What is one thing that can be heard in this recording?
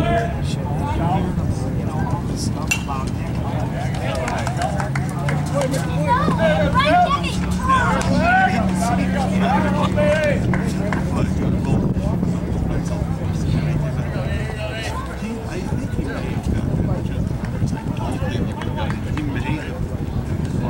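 Men talk and call out at a distance outdoors.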